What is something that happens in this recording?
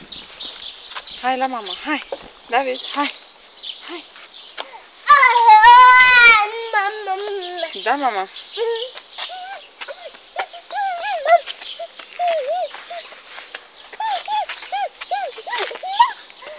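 A toddler babbles close by.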